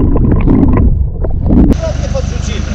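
Water gurgles and bubbles close by, heard underwater.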